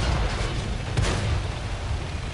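A shell explodes with a loud blast.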